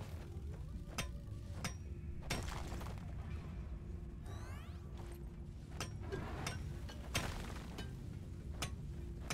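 A pickaxe strikes rock with sharp, ringing knocks, several times.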